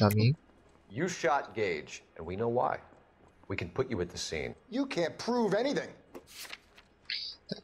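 A young man speaks calmly and firmly, close by.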